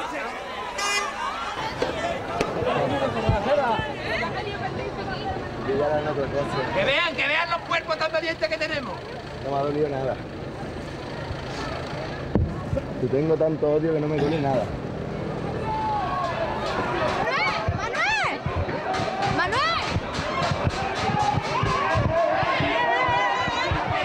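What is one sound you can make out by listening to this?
A crowd of men and women shouts and chants loudly close by.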